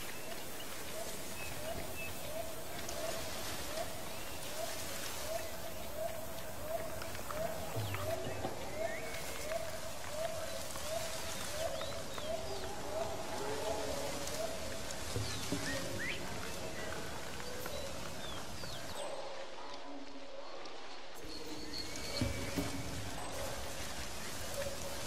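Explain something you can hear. Leaves rustle as a man pushes through dense plants.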